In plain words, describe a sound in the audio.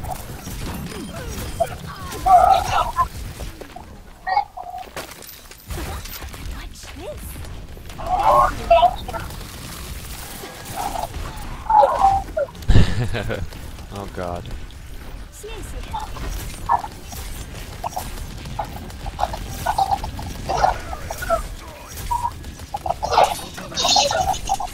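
Video game guns fire in rapid bursts.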